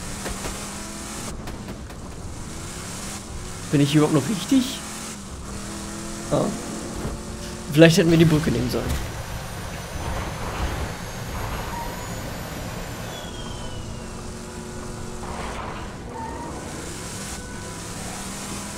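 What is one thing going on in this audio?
A vehicle engine hums steadily as it drives over rough ground.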